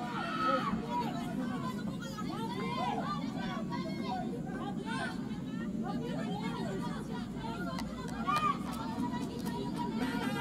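Young women shout and call out to each other outdoors on a field.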